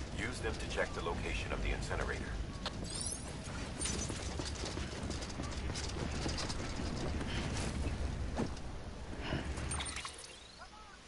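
Footsteps thud steadily on hard pavement.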